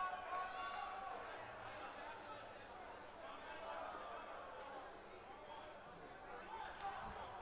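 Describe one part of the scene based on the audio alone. A large crowd cheers and chants loudly in an echoing arena.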